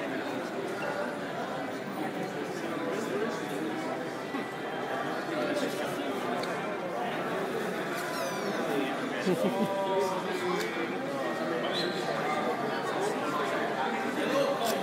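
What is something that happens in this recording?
A crowd of people chatters nearby in a large echoing hall.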